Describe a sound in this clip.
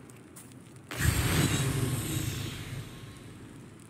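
A heavy rushing whoosh sounds as a figure drops and lands.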